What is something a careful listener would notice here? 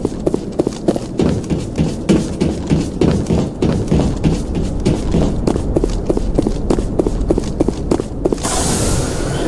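Footsteps thud quickly on a metal floor.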